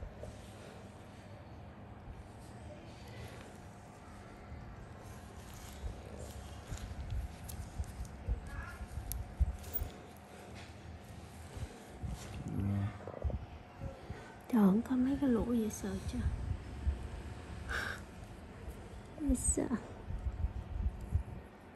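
Gloved fingers rub and press against skin with soft rustling.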